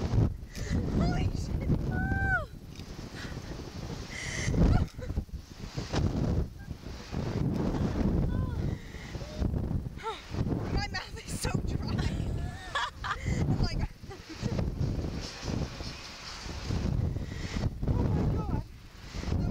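Young women laugh and shriek close by.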